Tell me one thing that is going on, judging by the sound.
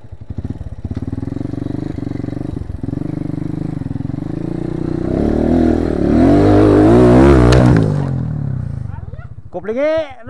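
A motorbike engine runs and revs up, then cuts out.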